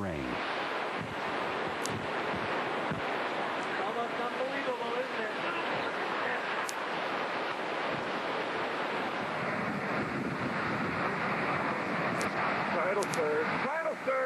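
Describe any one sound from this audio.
Hurricane winds roar and howl steadily outdoors.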